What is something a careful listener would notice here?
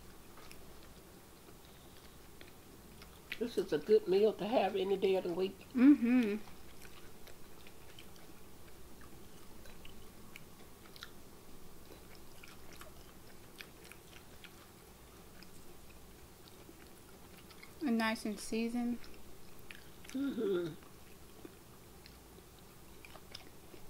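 A young woman chews crunchy food.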